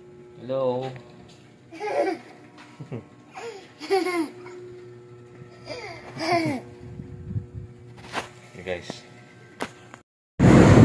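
A small child laughs and babbles close by.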